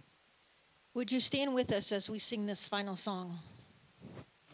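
A woman speaks through a microphone in an echoing hall.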